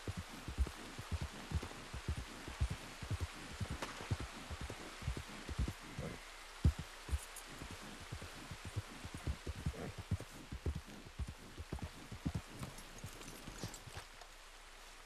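Horse hooves thud rapidly on soft ground.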